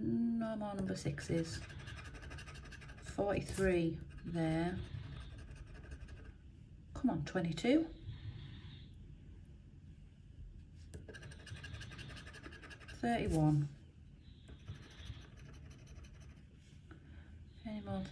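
A metal tool scratches across a scratch card.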